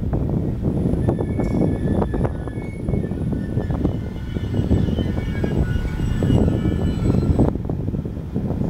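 Brakes squeal on an electric commuter train as it slows.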